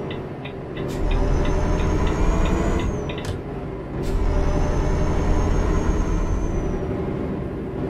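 A truck engine rumbles steadily, surging louder as it shifts gears.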